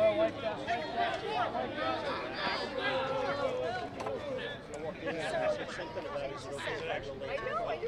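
Young men chatter and call out from a crowd outdoors.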